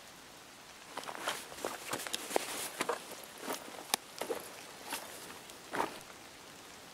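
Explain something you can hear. Gear items click and rustle as they are moved.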